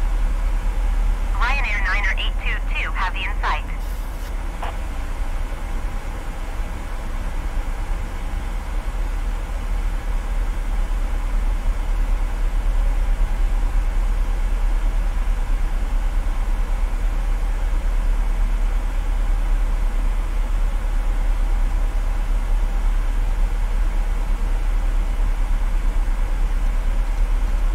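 Jet engines hum with a steady low drone.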